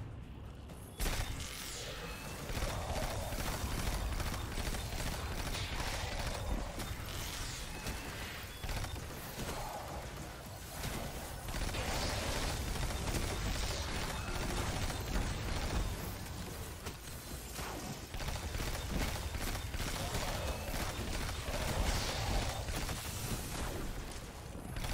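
Crackling electric blasts and explosions boom.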